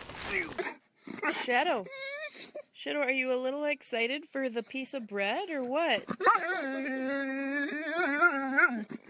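Dogs howl and whine close by.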